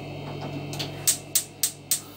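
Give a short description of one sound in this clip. A gas hob igniter clicks rapidly.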